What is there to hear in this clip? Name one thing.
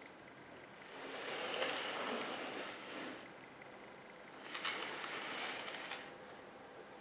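Pine sprigs and dry twigs rustle as hands arrange them.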